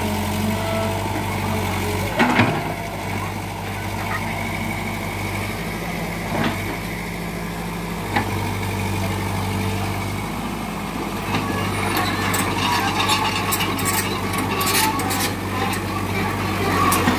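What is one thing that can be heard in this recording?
A diesel excavator engine rumbles steadily nearby.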